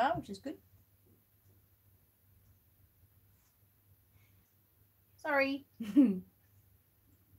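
A woman speaks briefly and calmly close by.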